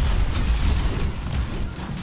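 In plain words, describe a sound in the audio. An energy beam roars loudly.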